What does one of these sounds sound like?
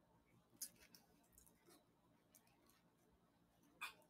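A young woman bites and chews food close by.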